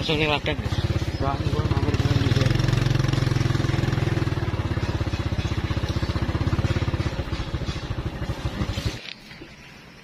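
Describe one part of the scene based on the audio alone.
A small motorcycle engine putters along a dirt track, then cuts out.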